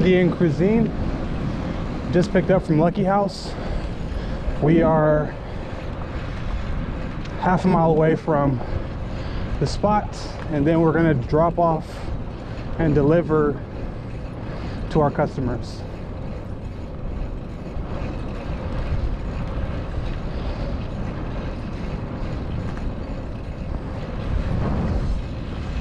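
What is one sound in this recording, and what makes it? Wind rumbles steadily past a moving bicycle.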